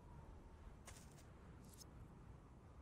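A soft menu chime sounds.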